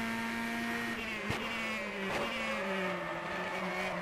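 A racing car engine drops in pitch as the car slows for a corner.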